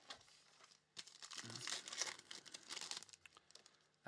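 A foil pack rips open.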